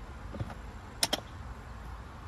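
A baby car seat clicks into place on a stroller.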